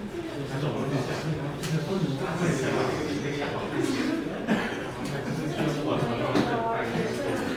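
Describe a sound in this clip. People murmur and chatter in the background.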